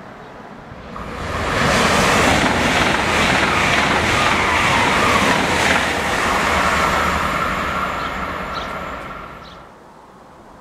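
A high-speed train rushes past close by with a loud roar.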